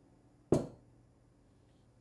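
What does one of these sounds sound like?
A bottle cap is twisted open with a click.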